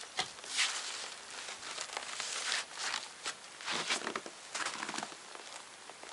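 A stiff canvas sheet rustles and scrapes against a wooden wall.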